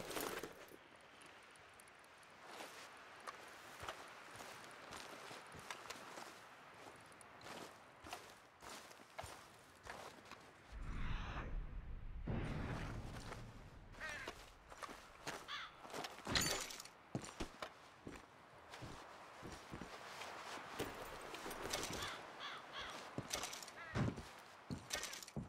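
Footsteps crunch on dirt and gravel outdoors.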